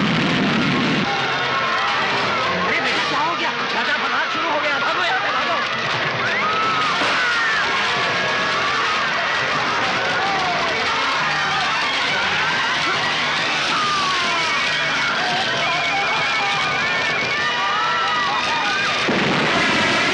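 A crowd shouts and screams in panic.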